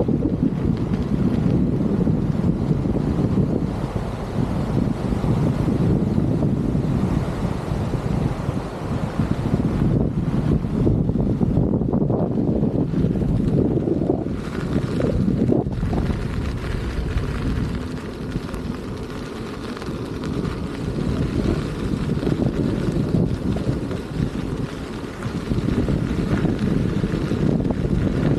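Skateboard wheels roll and rumble steadily on asphalt.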